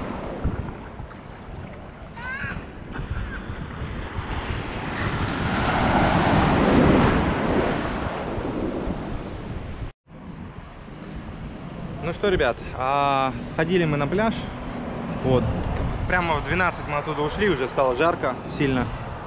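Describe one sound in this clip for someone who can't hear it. Wind blows roughly across the microphone.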